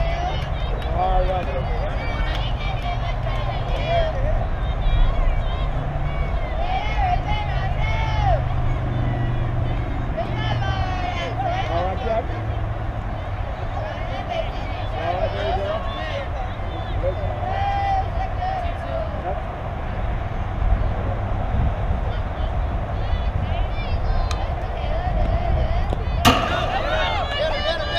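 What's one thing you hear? Young girls shout and chant outdoors.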